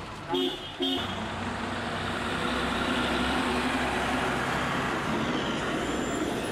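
A truck engine rumbles as the truck drives past on the road.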